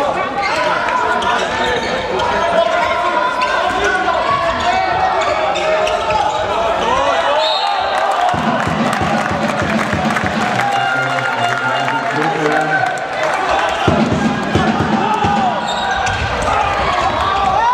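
Players' shoes squeak on a hard floor in an echoing hall.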